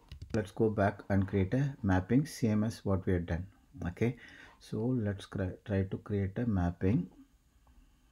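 A man talks calmly into a computer microphone.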